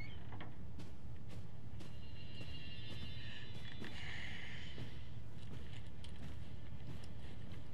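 Footsteps pad softly across a carpeted floor.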